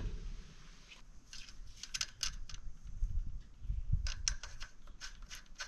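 Metal parts of a bicycle wheel click and tick under a hand.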